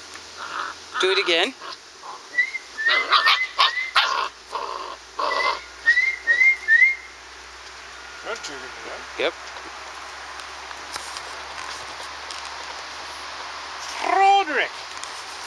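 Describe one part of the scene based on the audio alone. Puppies yelp and whine close by.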